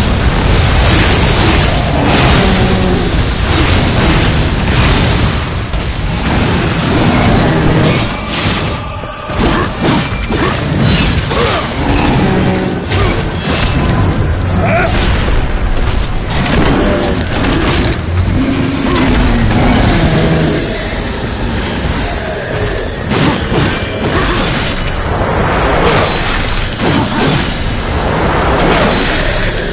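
Blades slash and clang in a fierce fight.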